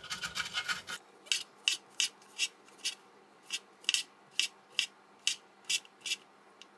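A knife slices through mushrooms with soft taps on a board.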